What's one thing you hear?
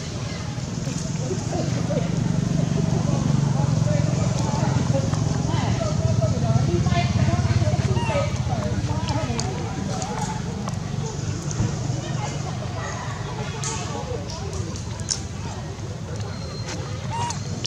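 A baby monkey squeaks and cries nearby.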